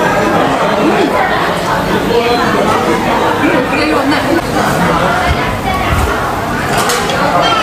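Many people chatter in the background.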